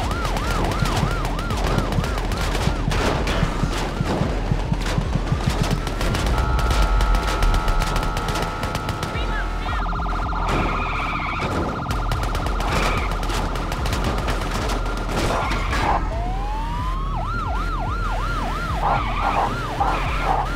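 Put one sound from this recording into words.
A police siren wails in rapid rising and falling sweeps.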